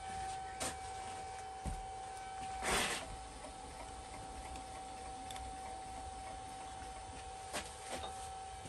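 A machine motor hums steadily.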